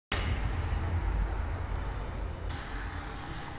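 Traffic rumbles past on a nearby street.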